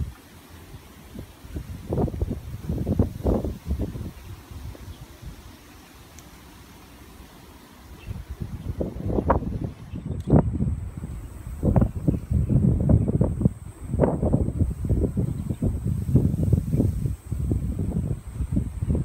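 Wind blows in strong gusts, rumbling against the microphone.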